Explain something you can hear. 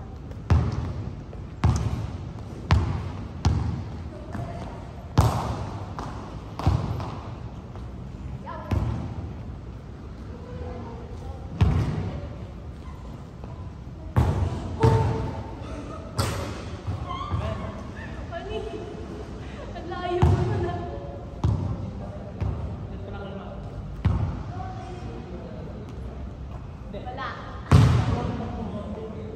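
A basketball bangs against a backboard and rim.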